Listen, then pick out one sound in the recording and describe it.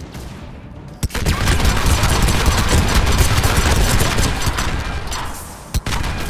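A rifle fires rapid bursts of gunshots at close range.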